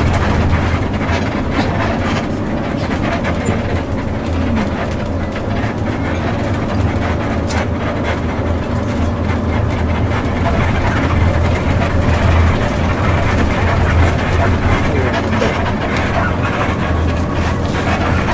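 Tyres rumble on a highway.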